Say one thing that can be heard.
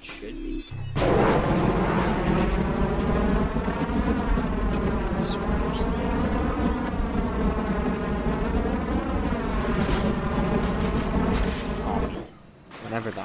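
A jet engine roars loudly, its pitch rising and falling.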